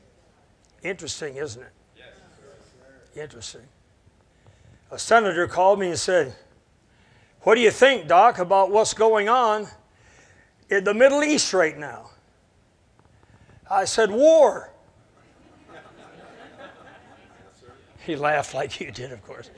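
An older man speaks with animation to an audience.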